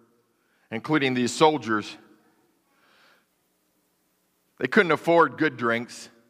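A man speaks calmly into a microphone in a large, echoing hall.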